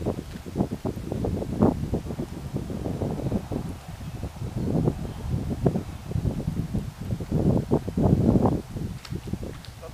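Gusty wind rumbles and buffets loudly outdoors.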